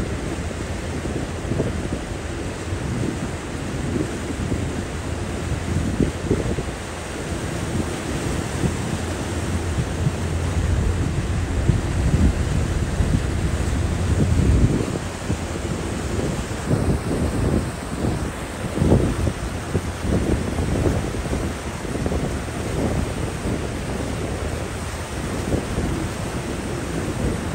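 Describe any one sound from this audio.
Wind blows hard, rumbling across the open water.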